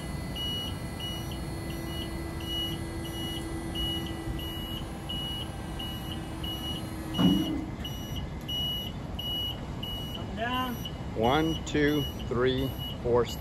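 A lift's warning alarm beeps quickly and repeatedly.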